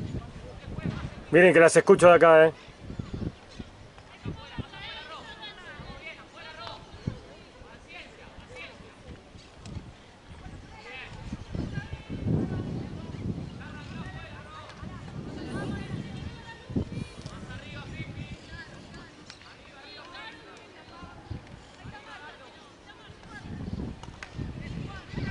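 Young women call out to each other across an open field.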